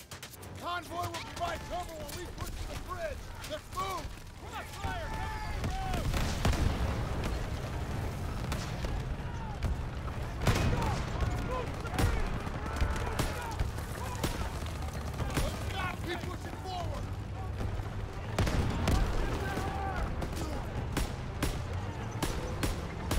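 Gunfire cracks repeatedly nearby.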